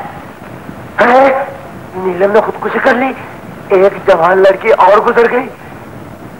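A man talks loudly and excitedly into a telephone.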